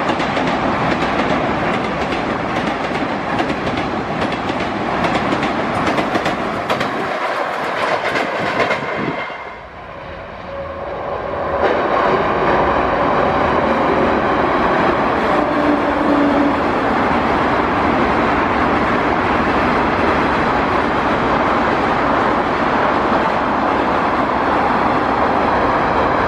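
A passenger train rumbles and clatters across a bridge.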